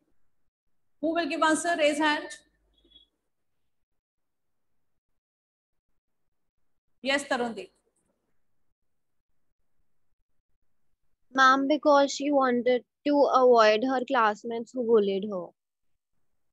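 A young woman speaks calmly and clearly into a microphone, in short bursts with pauses.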